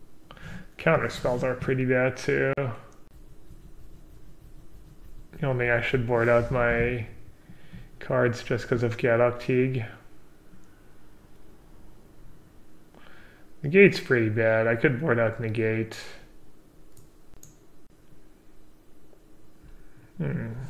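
A young man talks calmly into a close microphone, in short bursts with pauses.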